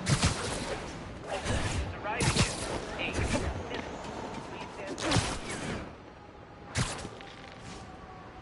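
Air whooshes past in loud bursts during fast swings through the air.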